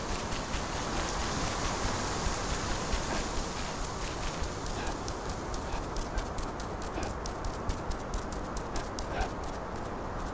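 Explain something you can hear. An animal's paws pad quickly on a hard floor.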